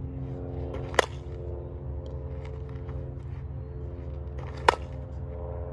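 A bat sharply cracks against a ball.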